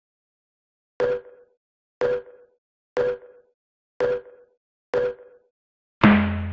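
A game countdown beeps once a second.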